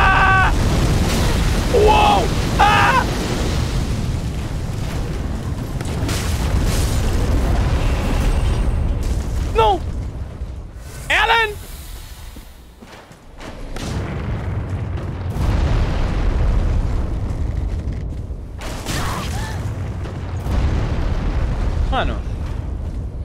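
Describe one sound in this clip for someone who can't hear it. A young man speaks briefly into a close microphone with animation.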